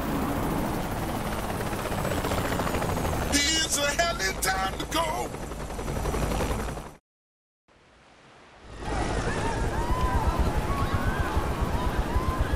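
A helicopter's rotor thumps rapidly overhead.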